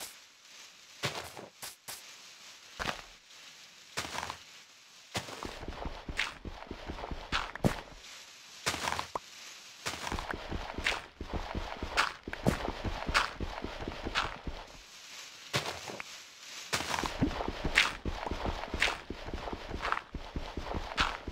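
Dirt crunches in quick repeated bursts as blocks are dug out.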